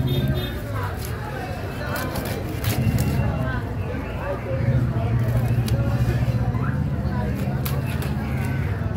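A cleaver chops through fish on a wooden block with sharp knocks.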